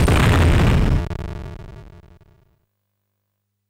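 Video game gunfire blasts loudly, then rings out and fades.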